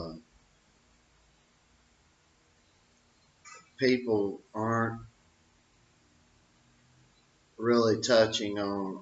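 An older man speaks calmly and close by, with pauses.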